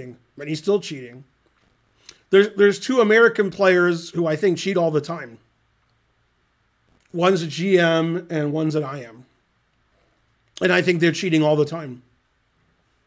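A middle-aged man talks calmly and casually into a close microphone, in bursts with pauses.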